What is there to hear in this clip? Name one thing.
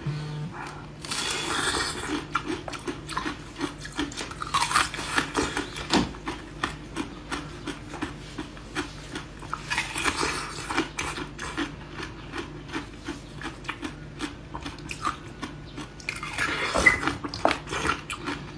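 A young woman bites into something crunchy close to a microphone.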